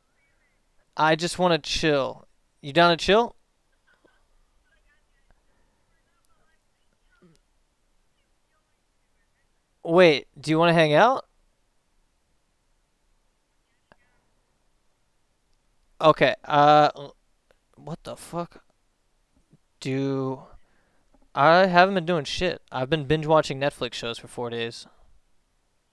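A young man talks casually in bursts, close to a microphone, with pauses between.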